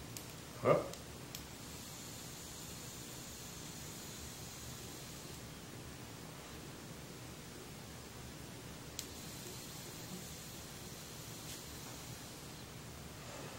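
A man inhales with a soft hiss.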